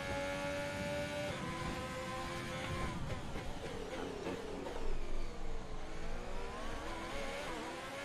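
A racing car engine screams at high revs, its pitch rising and dropping with gear changes.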